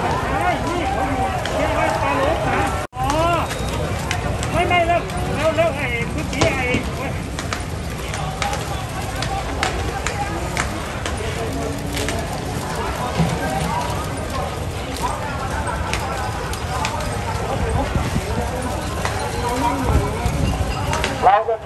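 A crowd of men shouts and calls out outdoors.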